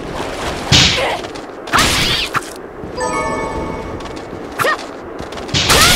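A sword swishes through the air in quick slashes.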